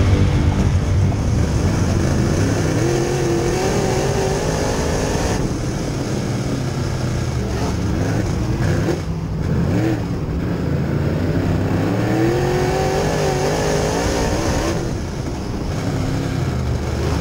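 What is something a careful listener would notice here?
A race car engine roars loudly up close, revving up and down.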